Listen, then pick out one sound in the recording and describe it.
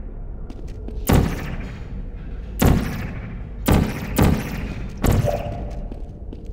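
A portal gun fires several sharp, whooshing shots.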